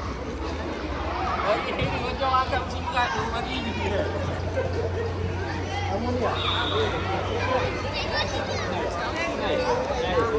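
A man talks to a group of children nearby.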